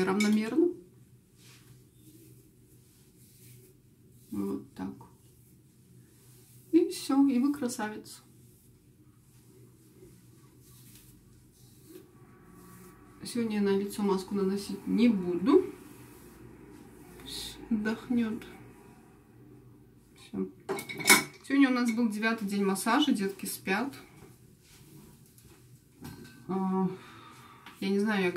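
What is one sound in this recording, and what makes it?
A young woman talks calmly and close by, in a small echoing room.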